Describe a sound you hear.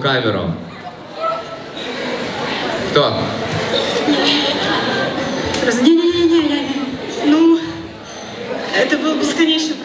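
A woman speaks through a microphone over loudspeakers in an echoing hall.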